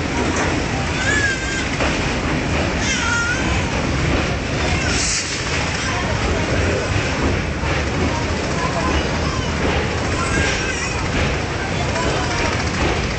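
Water splashes and churns below a moving boat.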